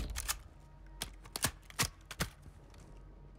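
A rifle is reloaded with sharp metallic clicks.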